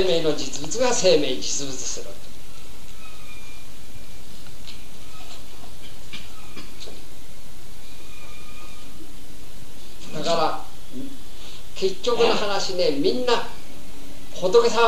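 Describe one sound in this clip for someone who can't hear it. An adult man speaks calmly, close by.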